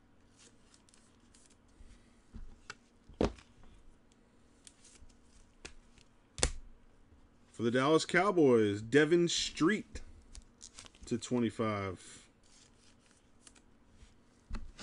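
A plastic card holder clicks and rustles as it is handled.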